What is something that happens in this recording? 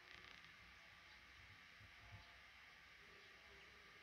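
Baby birds cheep faintly in a nest.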